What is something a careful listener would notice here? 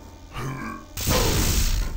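A railgun fires with a sharp electric crack.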